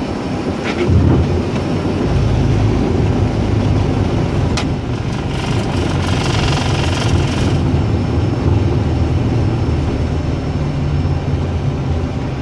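Jet engines roar louder as they power up for takeoff.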